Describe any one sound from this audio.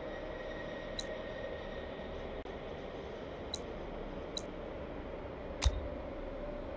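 Game interface clicks sound as menus open and close.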